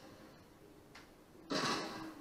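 Gunshots crack from a video game through a television speaker.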